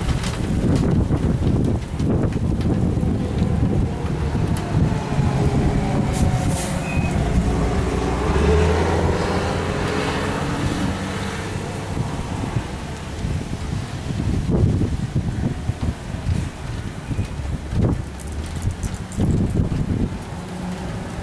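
Strong wind gusts and roars outdoors.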